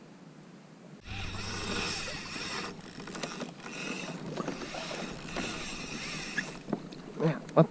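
A fishing reel's drag buzzes loudly as line runs out.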